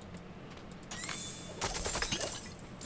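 Game combat sounds clash and whoosh.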